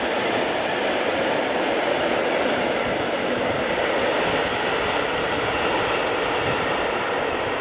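A long freight train rumbles and clatters along the tracks.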